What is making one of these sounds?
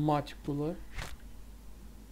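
A game menu opens with a short click.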